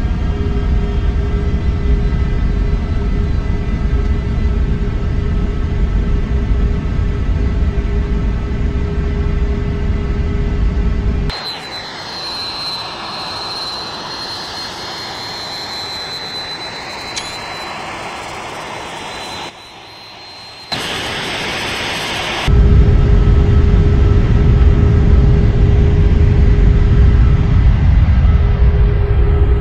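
Jet engines roar steadily with a deep rumble.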